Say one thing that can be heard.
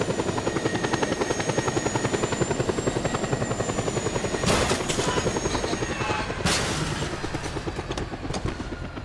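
Helicopter rotor blades thump rapidly and steadily, then fade away.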